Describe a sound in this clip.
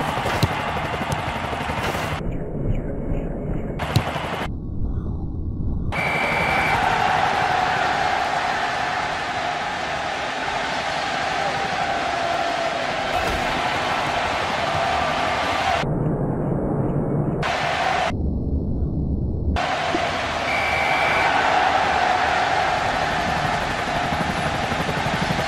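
A large crowd cheers and roars.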